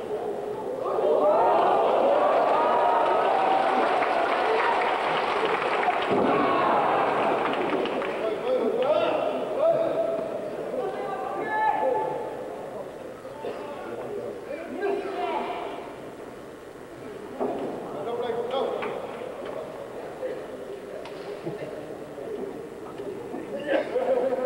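A large crowd cheers and shouts in an echoing indoor arena.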